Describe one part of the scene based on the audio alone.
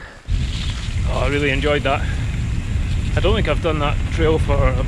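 A young man talks with animation, close to the microphone.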